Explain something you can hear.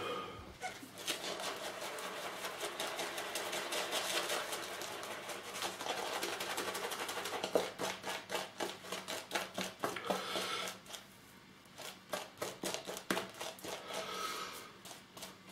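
A shaving brush swishes and scrubs rapidly against lathered skin.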